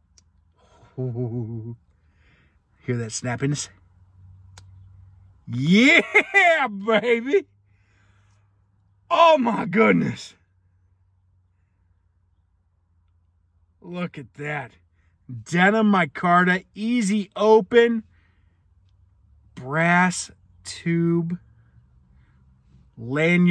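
A man talks with animation close to a microphone, in short bursts with pauses.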